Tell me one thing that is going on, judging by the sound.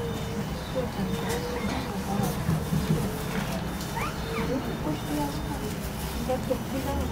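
Car engines idle and hum low in slow traffic nearby.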